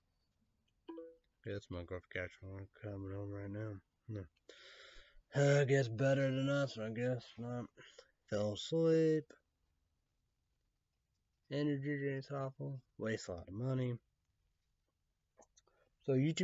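A young man talks calmly and close up, in short bursts.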